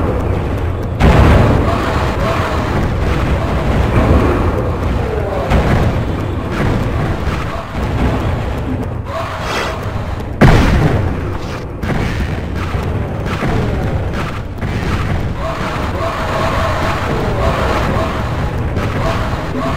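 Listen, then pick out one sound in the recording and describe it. A crossbow fires with sharp twangs, again and again.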